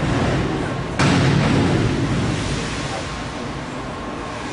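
A diver splashes into the water in a large echoing hall.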